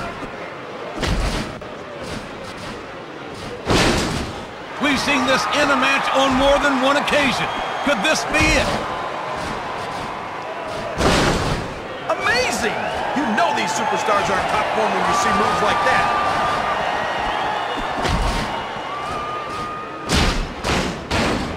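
Heavy thuds ring out as bodies slam onto a mat.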